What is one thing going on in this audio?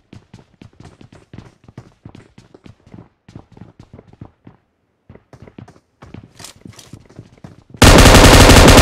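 Footsteps patter quickly on hard steps.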